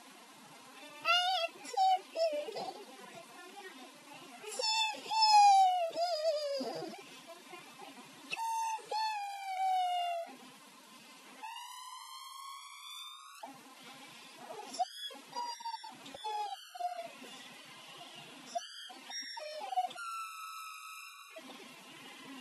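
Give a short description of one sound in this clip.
A young girl sings in a high voice close by.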